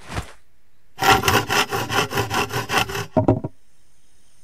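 A hand saw cuts through wood with quick, rhythmic strokes.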